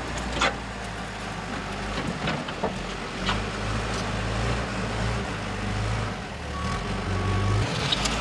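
A backhoe's bucket scrapes and clanks against dirt and stones.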